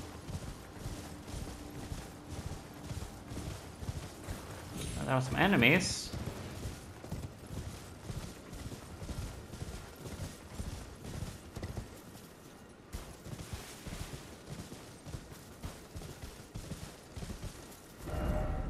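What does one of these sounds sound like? A horse gallops, its hooves thudding steadily on grass.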